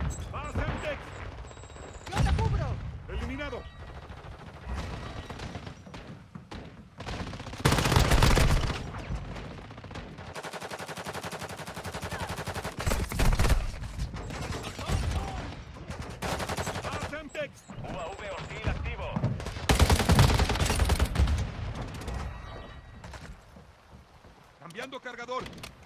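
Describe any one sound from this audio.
Automatic rifle fire bursts in a video game.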